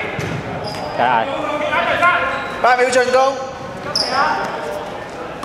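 Young players shout to each other in a large echoing hall.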